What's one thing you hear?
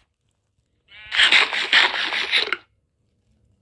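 Someone munches food with loud crunching bites.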